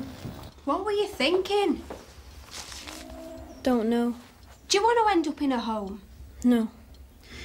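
A girl speaks nearby, with animation.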